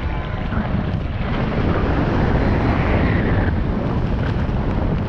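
Strong wind roars and buffets steadily.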